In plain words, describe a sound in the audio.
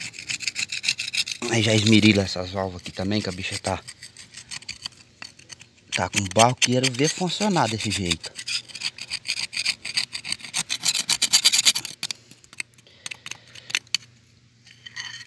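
A metal blade scrapes rapidly against a metal plate.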